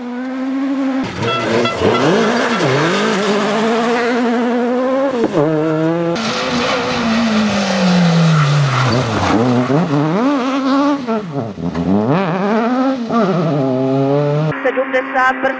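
Tyres hiss and spray on a wet road.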